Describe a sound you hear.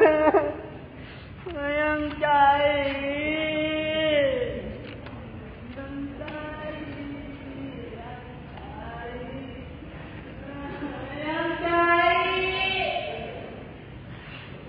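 A young man sings out loudly in a large echoing hall.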